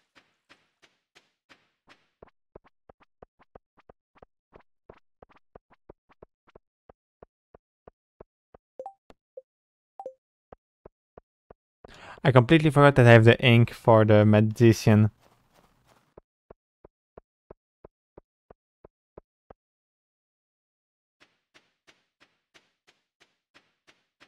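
Light footsteps tap quickly and steadily on hard ground.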